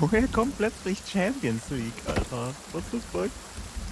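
An axe chops into wood.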